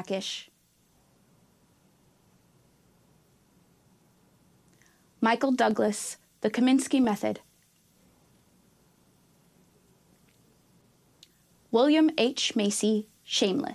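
A woman reads out names clearly through a microphone, with short pauses.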